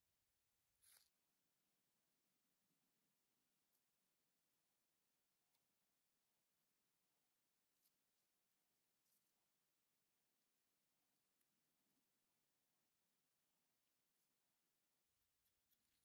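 A spatula smears putty onto a wooden handle with soft scraping.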